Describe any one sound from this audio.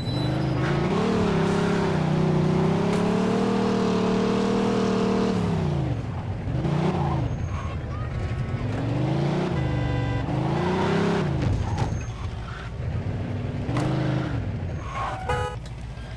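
A car engine revs and drops as the car drives.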